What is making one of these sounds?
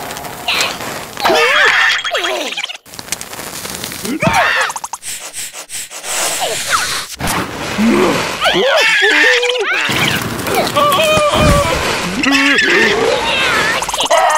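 Cartoon creatures scream in alarm.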